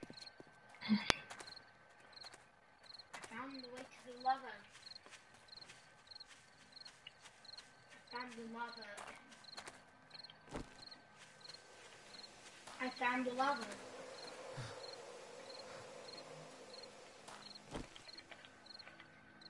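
Footsteps crunch steadily over dry ground and grass.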